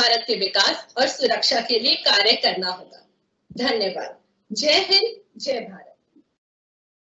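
A girl speaks clearly into a microphone.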